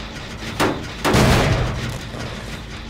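A metal engine clanks and rattles as it is struck.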